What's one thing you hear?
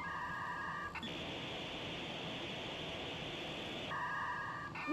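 An old television hisses loudly with static.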